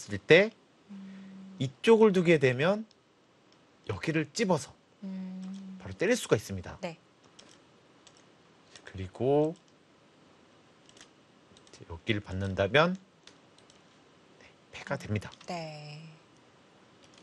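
Two young women talk in turn through microphones, in short bursts with pauses.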